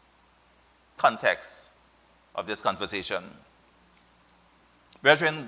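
A middle-aged man speaks calmly into a microphone in short phrases.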